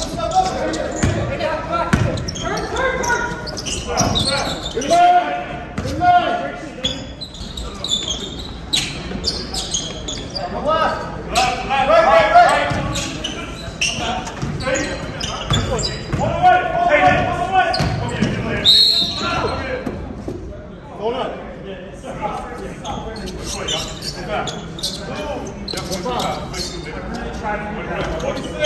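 Men shout and call out to each other in a large echoing gym.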